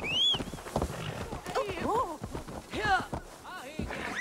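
A horse whinnies close by.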